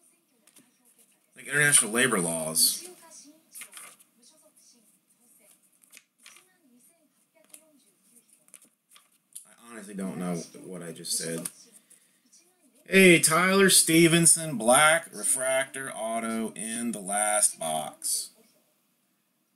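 Trading cards rustle and flick as they are shuffled through by hand.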